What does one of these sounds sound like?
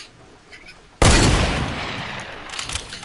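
A loud gunshot blasts and echoes away in a video game.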